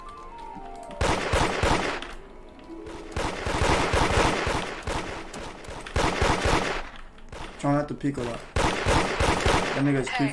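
Rapid gunfire blasts in bursts.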